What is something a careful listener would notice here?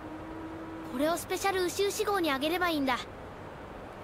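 A young boy speaks cheerfully in a high voice.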